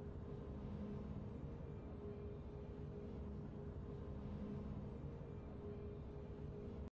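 Triumphant fanfare music plays with a low sustained chord.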